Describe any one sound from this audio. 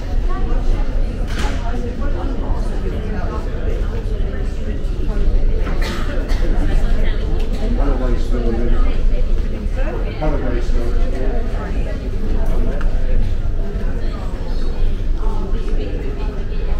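Many adults chatter in an indoor room with a light echo.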